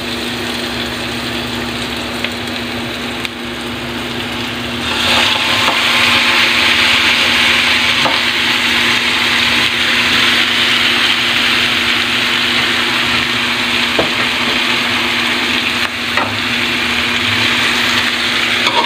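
Oil sizzles loudly in a hot pan.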